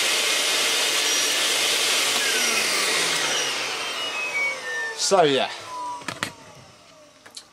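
A vacuum cleaner whirs loudly, then winds down to a stop.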